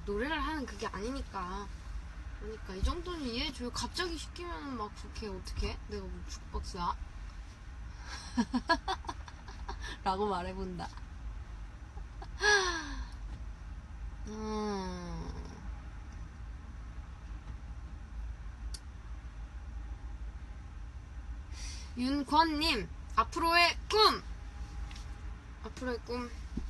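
A young woman talks close to a microphone, with pauses.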